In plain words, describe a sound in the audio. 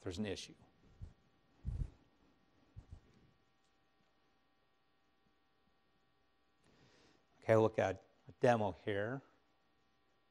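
A man speaks into a microphone, pausing often.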